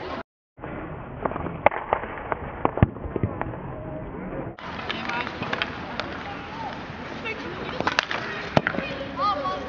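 A hockey ball is struck with a sharp crack.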